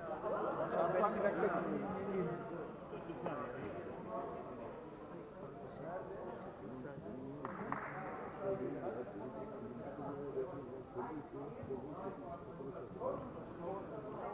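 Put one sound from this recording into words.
Men talk nearby in a large echoing hall.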